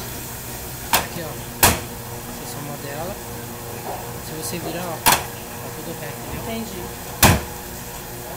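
Metal knocks sharply on a steel counter.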